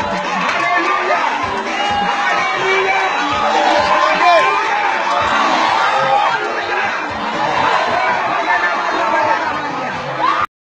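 A large crowd of men and women sings and chants loudly together.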